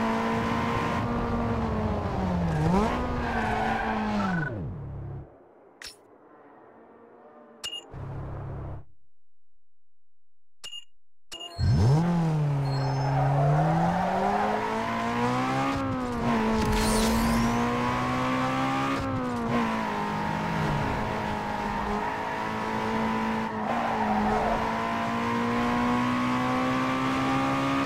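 A car engine roars and revs, rising and falling in pitch as it speeds up and slows down.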